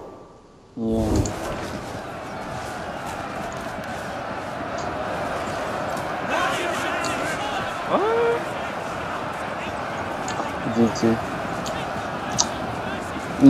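A large crowd of soldiers shouts and clashes in a constant battle din.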